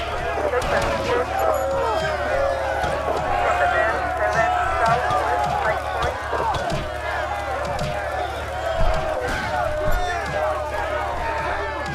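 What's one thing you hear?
Fists thud repeatedly against bodies in a brawl.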